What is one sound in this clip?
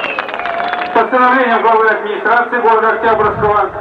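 A middle-aged man speaks formally into a microphone through a loudspeaker.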